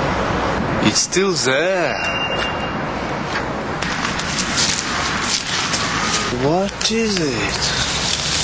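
A young man speaks calmly and questioningly.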